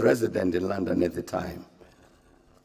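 An elderly man speaks calmly into microphones, reading out.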